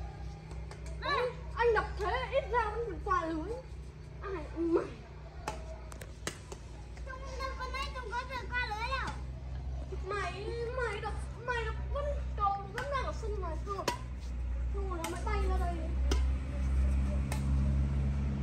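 Young children shout and call out with animation outdoors.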